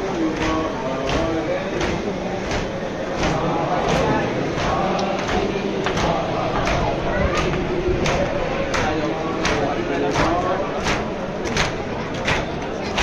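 A large crowd of men chants in unison in a large echoing hall.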